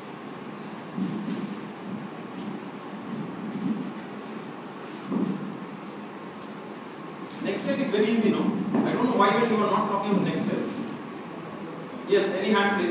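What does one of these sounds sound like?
A man speaks calmly in a room with a slight echo.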